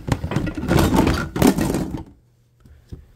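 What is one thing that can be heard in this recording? Plastic containers clatter and knock together.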